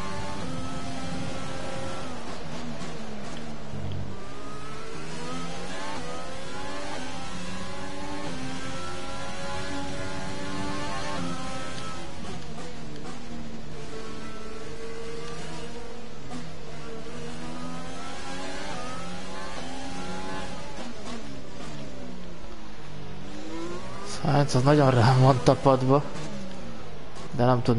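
A racing car engine whines loudly, its pitch rising and falling as gears change.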